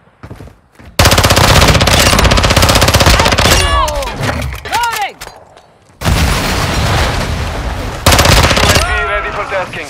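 A rifle fires in rapid bursts, loud and close.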